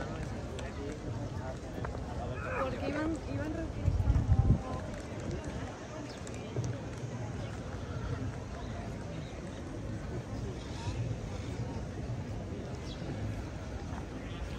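Outdoors, a crowd of people chatter in the distance.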